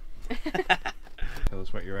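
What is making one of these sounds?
A knife cuts through toast.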